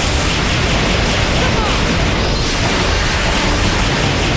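Energy blasts boom and crackle.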